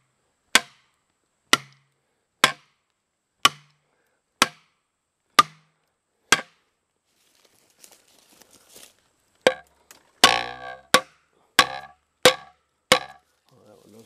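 A hammer strikes wedges with sharp, ringing knocks at a steady pace.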